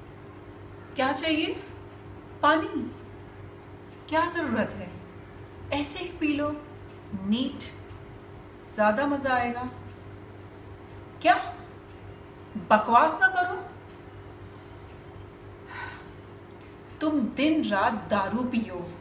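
A young woman speaks close to the microphone in short, earnest phrases.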